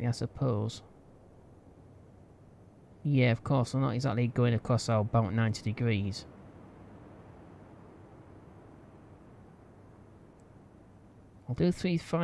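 Rough waves churn and splash.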